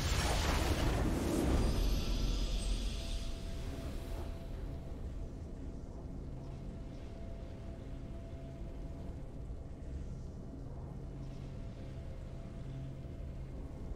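Triumphant music plays softly and steadily.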